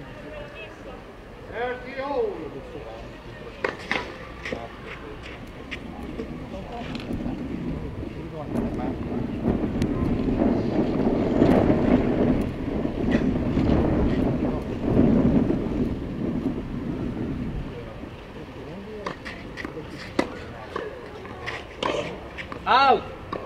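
A tennis ball is struck by rackets with sharp pops.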